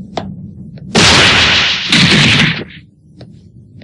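A creature growls menacingly.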